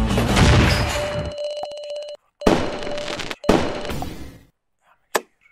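Coins jingle as a score is tallied.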